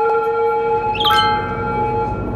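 A short notification chime rings out.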